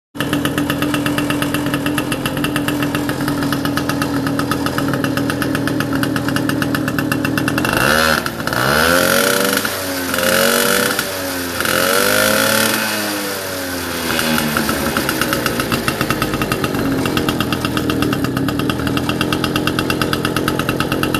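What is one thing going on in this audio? A small moped engine idles with a rapid, steady putter close by.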